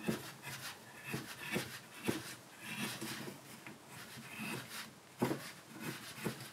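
A carving knife shaves thin curls from wood with short scraping strokes.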